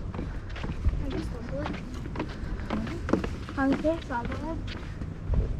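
A woman speaks briefly in passing, close by.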